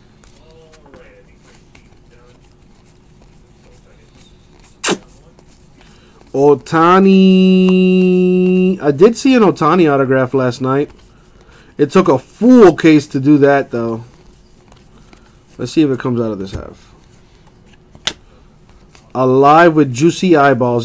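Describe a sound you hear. Trading cards slide and flick softly against each other as they are sorted by hand.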